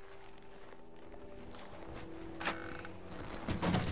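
Footsteps fall softly on a wooden floor.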